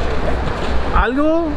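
A man speaks loudly and cheerfully close by.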